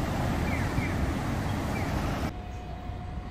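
Traffic rumbles along a city street.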